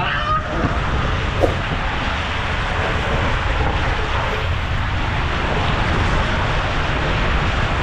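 Water rushes and splashes loudly through an enclosed tube.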